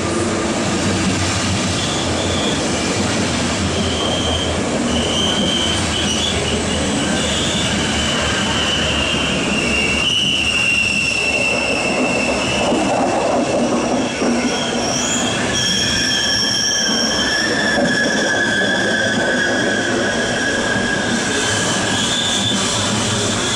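Train wheels screech with high, drawn-out squeals on the rails.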